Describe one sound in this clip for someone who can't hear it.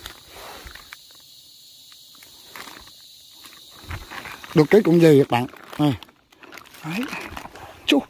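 A plastic bag crinkles and rustles as it is handled.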